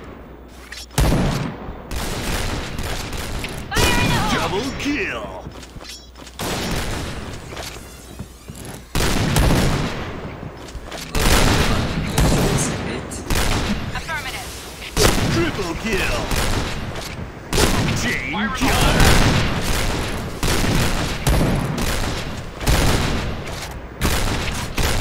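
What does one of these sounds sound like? A sniper rifle fires loud single shots with a booming echo.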